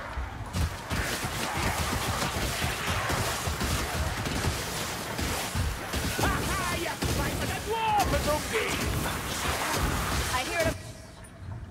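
Creatures screech and snarl during the fight.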